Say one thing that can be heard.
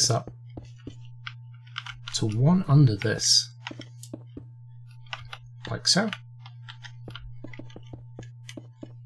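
Blocks are placed with short, soft clicks.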